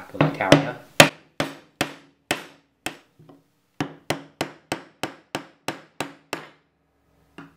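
A metal tool clicks and scrapes against a metal plate.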